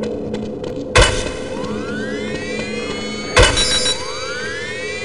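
A futuristic gun fires with loud blasts and a rising electronic whine.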